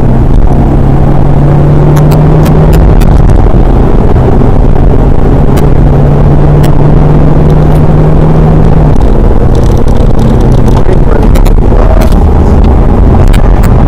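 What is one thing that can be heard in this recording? Tyres rumble and hiss on the track.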